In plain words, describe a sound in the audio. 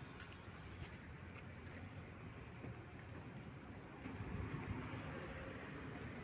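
A shopping cart rattles as it rolls over pavement.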